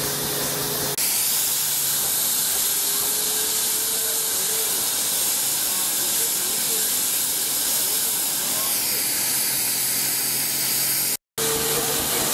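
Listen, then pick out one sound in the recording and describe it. A steam engine's machinery hums and rumbles.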